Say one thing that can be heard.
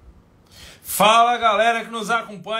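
A man suddenly calls out loudly with a drawn-out voice.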